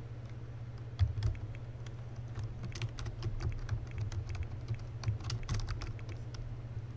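Keys on a keyboard tap quickly.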